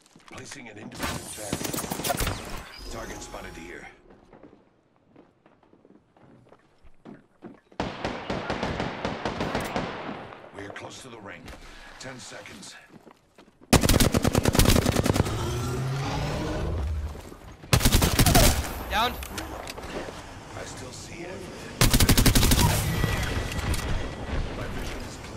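Rapid automatic gunfire rattles in bursts.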